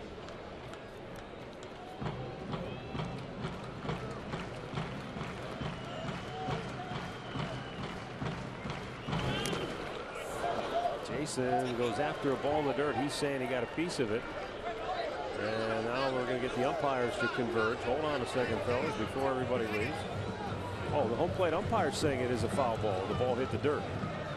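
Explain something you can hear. A stadium crowd murmurs steadily outdoors.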